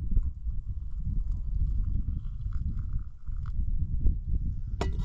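Wind rumbles outdoors across the microphone.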